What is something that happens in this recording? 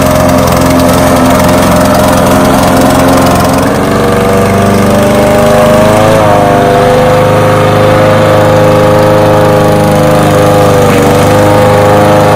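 A petrol lawn mower engine drones steadily close by.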